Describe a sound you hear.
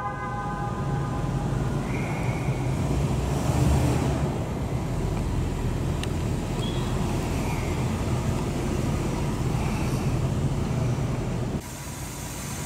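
A car engine rumbles as the car rolls slowly through a large echoing hall.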